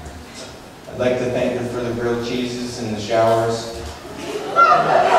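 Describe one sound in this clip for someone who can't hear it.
A man speaks into a microphone through loudspeakers.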